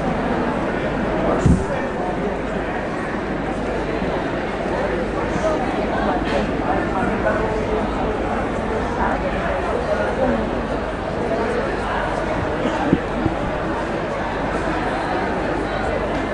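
A man speaks calmly into a microphone, heard through loudspeakers in a large echoing space.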